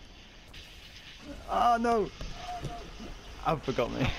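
A car crashes and explodes.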